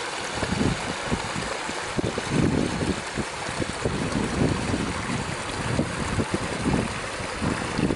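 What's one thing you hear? A small stream trickles and splashes over stones nearby.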